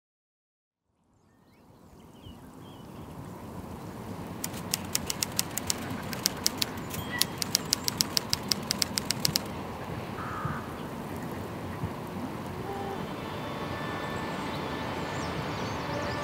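A boat engine hums far off across calm water.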